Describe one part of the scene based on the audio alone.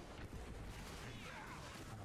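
A fiery blast crackles and roars.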